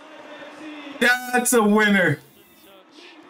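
A young man exclaims loudly and excitedly close to a microphone.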